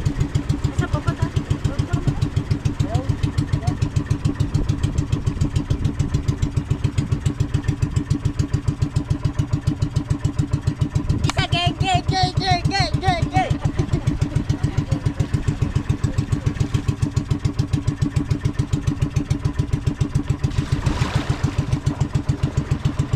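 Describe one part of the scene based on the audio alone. A boat engine chugs loudly and steadily throughout.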